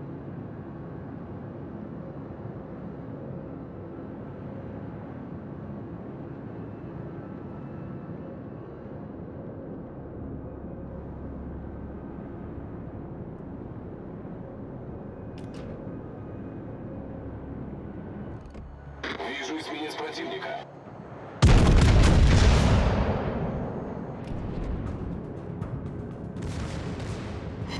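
Water rushes steadily along a ship's hull.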